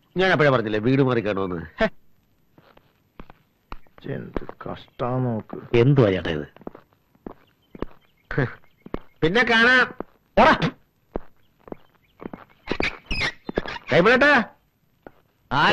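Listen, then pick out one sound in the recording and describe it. Several men talk with animation nearby.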